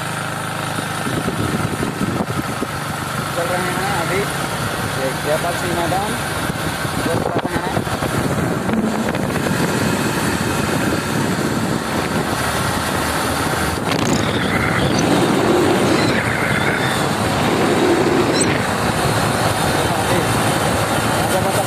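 Wind rushes past the rider outdoors.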